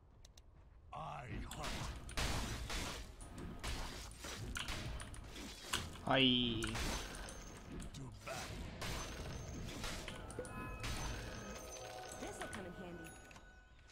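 Spell effects and blows clash and crackle in rapid bursts.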